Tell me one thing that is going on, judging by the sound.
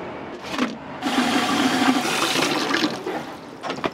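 Water pours and splashes into a metal pot.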